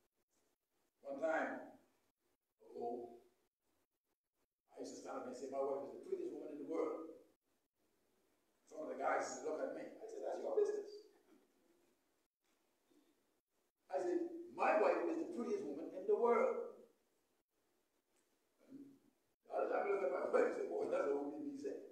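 A man preaches with animation through a loudspeaker in an echoing hall.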